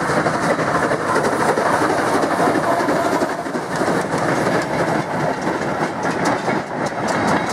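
A steam locomotive chuffs steadily as it hauls a train past.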